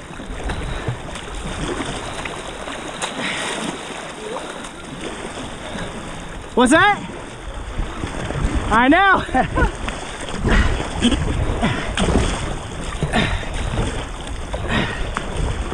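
River water rushes and laps against a small boat.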